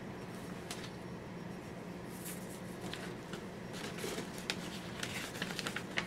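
Paper pages rustle and flap close by as a book is leafed through.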